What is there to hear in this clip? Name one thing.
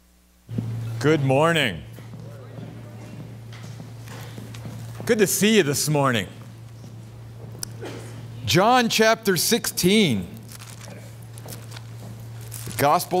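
A middle-aged man speaks loudly in short, expressive phrases with pauses between them.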